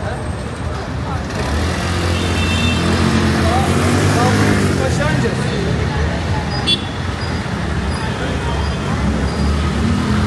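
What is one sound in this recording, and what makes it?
Motor scooters hum past on a busy street.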